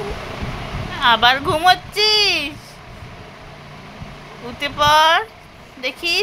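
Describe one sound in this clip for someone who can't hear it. A toddler squeals loudly in a high voice close by.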